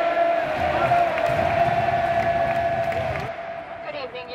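A huge stadium crowd sings and chants loudly.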